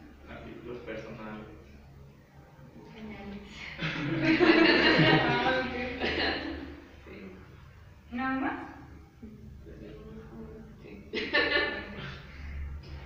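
A woman speaks nearby in a calm voice.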